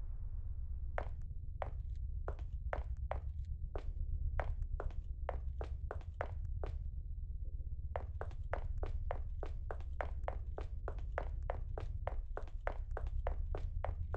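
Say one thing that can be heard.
Footsteps tread at a steady walking pace.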